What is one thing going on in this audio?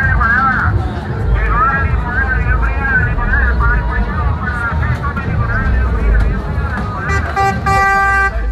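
A crowd of men and women chatters loudly nearby outdoors.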